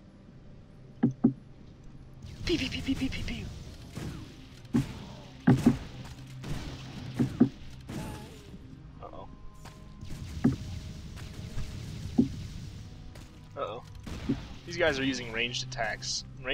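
Swords clash and strike skeletons in quick blows.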